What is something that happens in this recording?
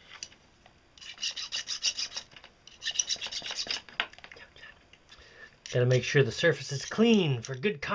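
A knife blade scrapes against a wire.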